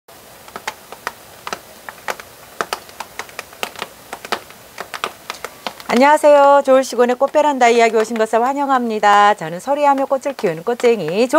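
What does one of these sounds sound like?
Raindrops patter and tap on a plastic cover.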